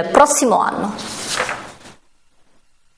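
Paper rustles as sheets are moved.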